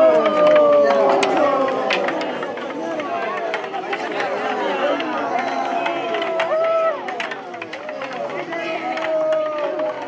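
A crowd of young men and boys shouts and chants loudly close by.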